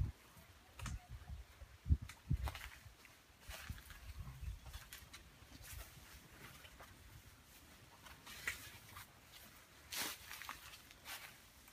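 Leaves rustle and snap as a person picks them off plants.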